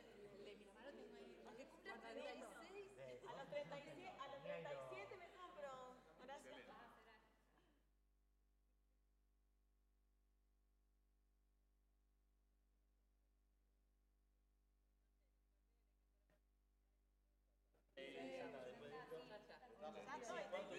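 A crowd of men and women chatter and call out in a large hall.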